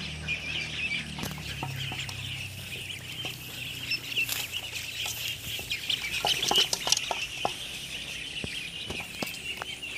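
Ducklings dabble and peck at wet feed in a basin.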